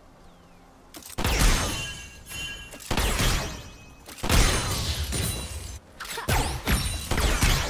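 Magic blasts and weapon hits crash in a busy fight.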